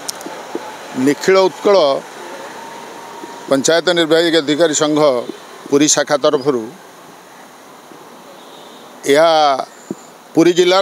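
A middle-aged man speaks into microphones in short bursts.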